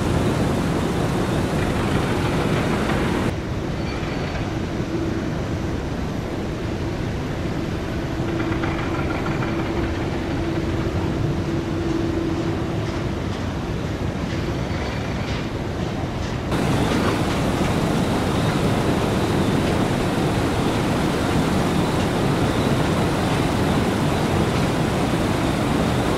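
Jet engines roar steadily as an airliner rolls along a runway nearby.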